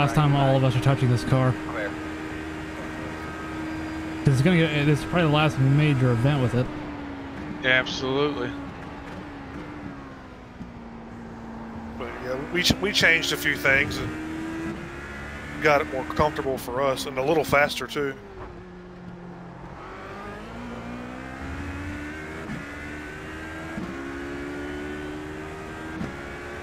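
A racing car engine drones and whines, rising and falling in pitch as it shifts gears.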